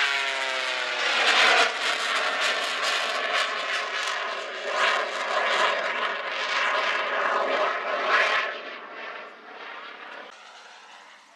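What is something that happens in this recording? A stunt plane's engine roars overhead, its pitch rising and falling.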